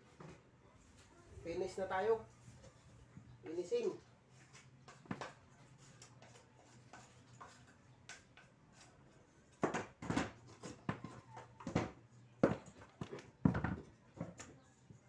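A trowel scrapes and taps against a hard surface.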